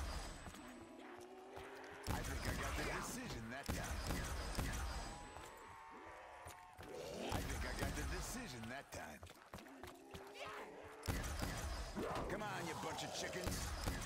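Zombies growl and snarl nearby.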